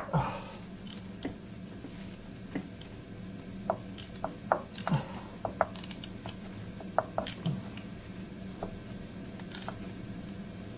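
A ratchet wrench clicks in short bursts as it turns a bolt.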